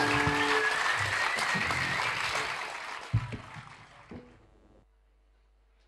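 An audience applauds loudly and the noise fades away.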